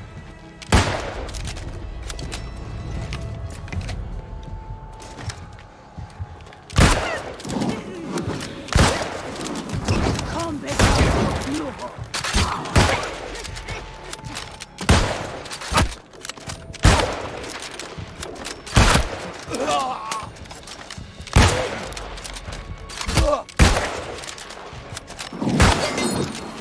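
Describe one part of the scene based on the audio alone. Heavy weapon blows land with sharp, repeated thuds.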